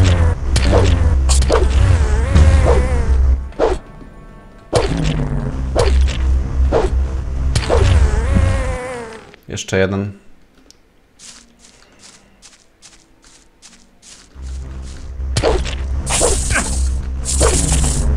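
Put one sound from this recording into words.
A sword swishes through the air.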